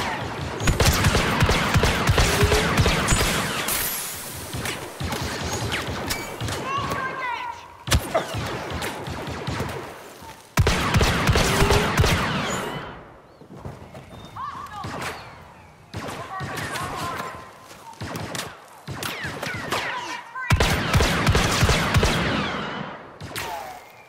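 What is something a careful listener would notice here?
Laser blasters fire in rapid, crackling bursts.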